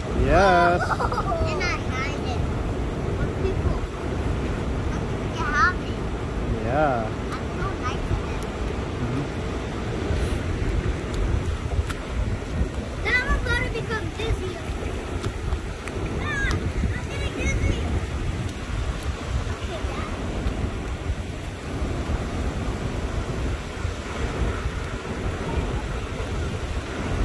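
Small waves wash and fizz over sand, close by.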